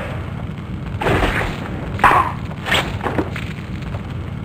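A sword slashes and strikes in a close fight.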